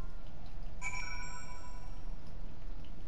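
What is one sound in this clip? A bright electronic chime rings once and slowly fades.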